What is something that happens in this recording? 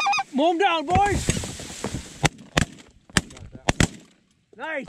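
Shotguns fire several loud blasts in quick succession.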